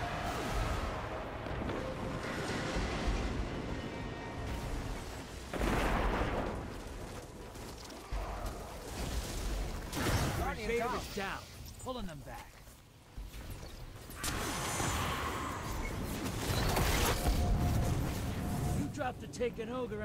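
Video game weapon fire and effects crackle and whoosh.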